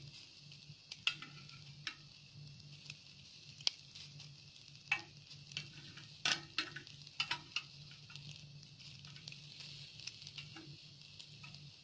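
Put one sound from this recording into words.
Tongs tap and scrape against a pan.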